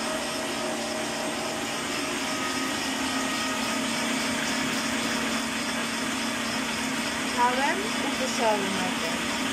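A stand mixer whirs steadily as it whisks.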